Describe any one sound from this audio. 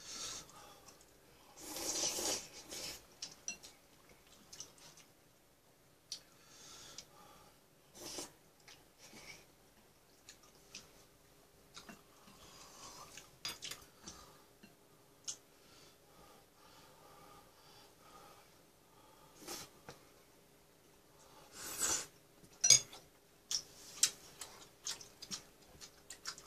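A young woman chews and slurps food close by.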